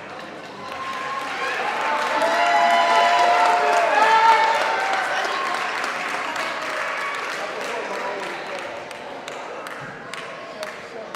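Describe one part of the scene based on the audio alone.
A group of young men and women sing together through microphones in an echoing hall.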